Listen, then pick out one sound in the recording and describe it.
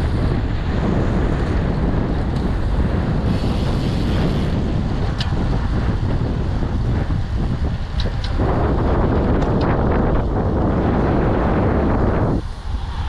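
Wind roars loudly against a microphone.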